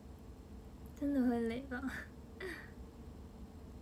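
A young girl speaks playfully close to a microphone.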